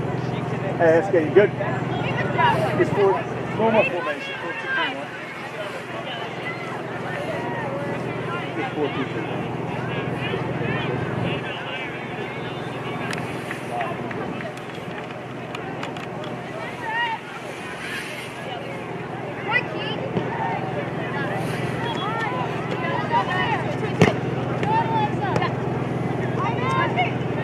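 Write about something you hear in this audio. Young women and spectators shout and call out across an open field.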